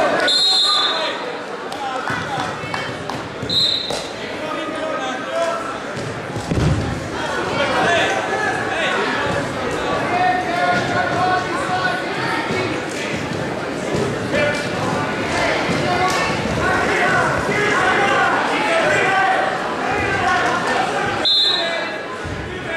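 A referee blows short, sharp whistle blasts in a large echoing hall.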